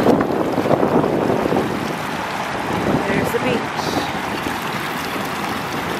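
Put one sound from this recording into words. A shallow stream of water ripples and splashes over sand.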